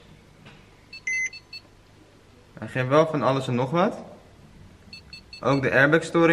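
A car's warning chime beeps a few times.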